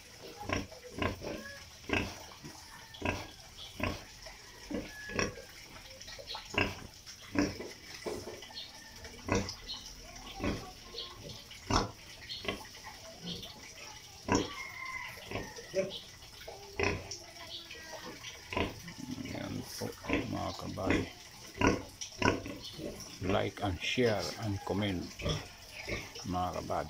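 A pig snuffles and chomps while rooting at the ground.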